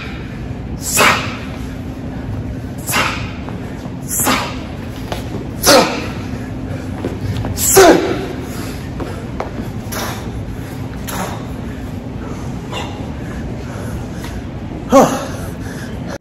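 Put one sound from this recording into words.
A man shouts out sharply in bursts in an echoing room.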